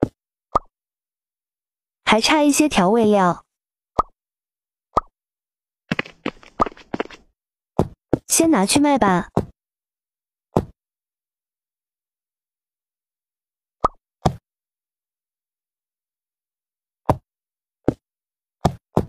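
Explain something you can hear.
Short soft pops sound as blocks are placed.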